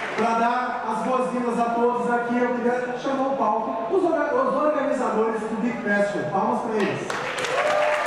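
A young man speaks calmly through a microphone in a large hall.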